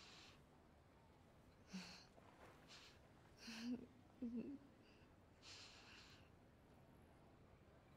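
A young woman breathes and sobs softly nearby.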